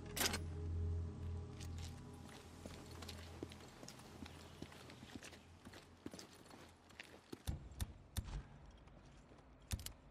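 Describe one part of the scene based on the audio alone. Footsteps crunch on gravel and pavement at a run.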